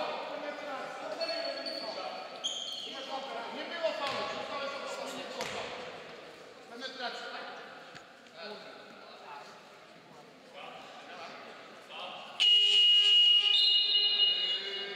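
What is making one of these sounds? Spectators chatter in the background.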